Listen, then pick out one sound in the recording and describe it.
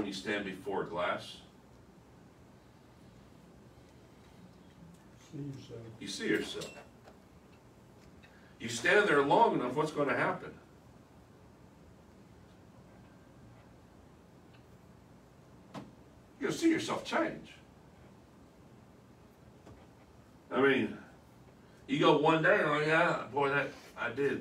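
A middle-aged man speaks calmly nearby, in short bursts with pauses.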